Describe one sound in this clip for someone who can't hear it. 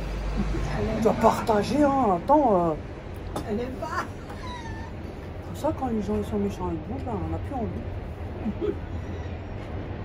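A middle-aged woman talks close by with animation.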